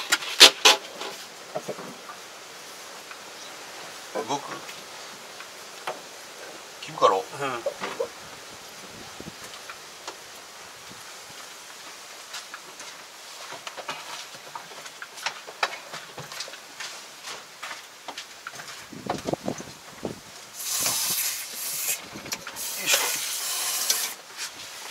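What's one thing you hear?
Metal tools clink and scrape against engine parts.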